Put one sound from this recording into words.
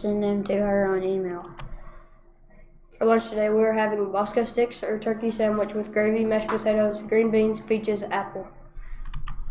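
A boy speaks calmly nearby.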